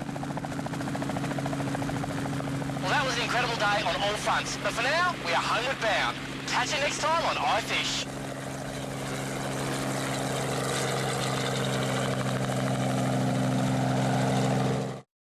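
A helicopter engine drones steadily with its rotor thumping close by.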